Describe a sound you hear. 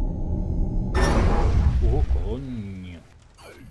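A loud whoosh rushes past and fades.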